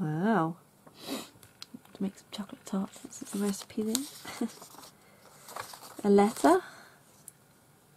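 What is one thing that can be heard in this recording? Sheets of paper rustle and shuffle as they are handled.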